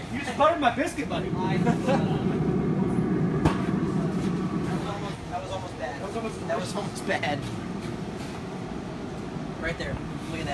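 A grill's fan hums steadily.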